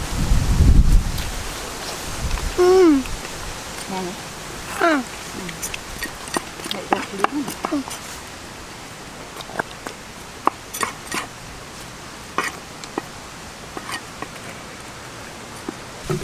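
A girl bites into crisp fruit and chews noisily up close.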